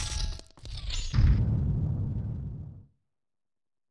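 A heavy stone door rumbles as it slides open.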